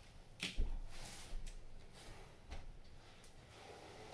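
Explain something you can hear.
A flat board thumps and knocks on a carpeted floor.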